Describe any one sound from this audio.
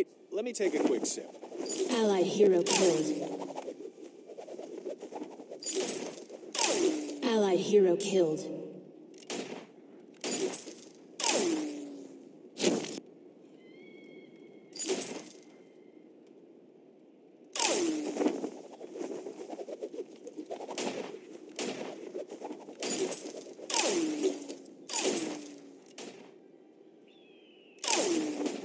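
Game sound effects of spells and weapons burst and whoosh again and again.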